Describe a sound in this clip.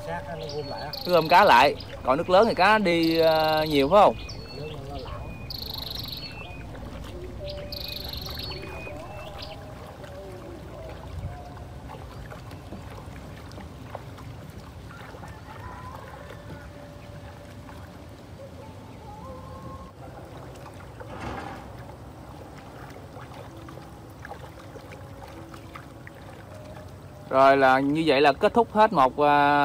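Water laps gently against a small wooden boat.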